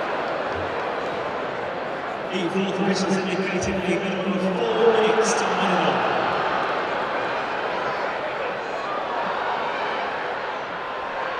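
A large stadium crowd murmurs and cheers outdoors.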